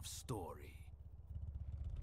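A man speaks calmly and deeply.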